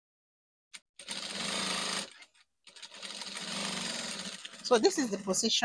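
A sewing machine whirs as it stitches in short bursts.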